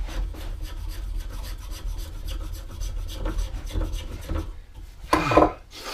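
A spokeshave shaves curls from wood with a rasping scrape.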